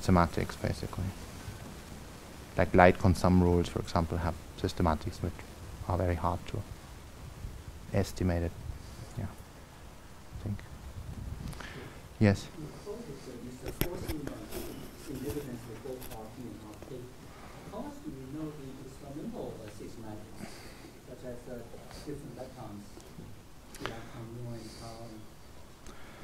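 A middle-aged man speaks calmly in a room with some echo.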